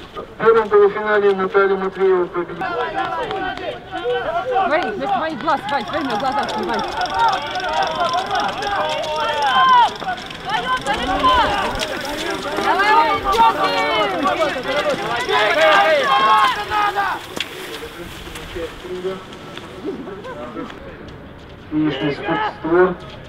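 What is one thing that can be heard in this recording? Spectators outdoors shout and cheer for passing skiers.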